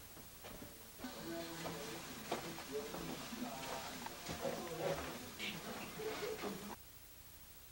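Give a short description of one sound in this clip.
Footsteps walk along a hallway.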